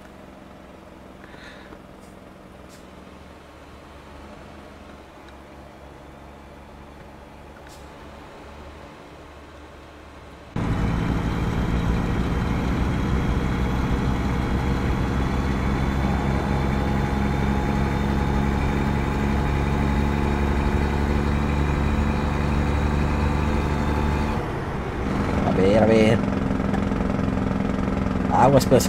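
A truck engine rumbles steadily, growing louder and closer partway through.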